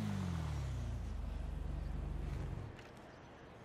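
A motorcycle engine idles and winds down.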